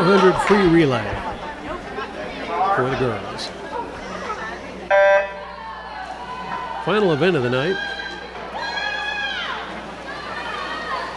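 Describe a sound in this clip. A crowd of swimmers cheers and shouts loudly in an echoing hall.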